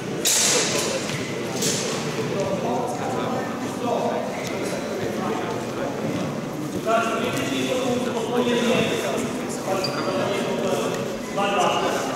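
Two men talk calmly in a large echoing hall.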